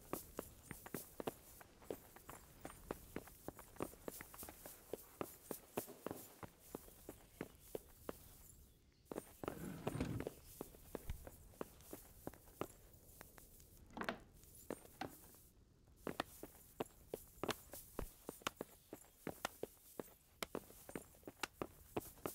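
Footsteps thud on a wooden floor at a steady walking pace.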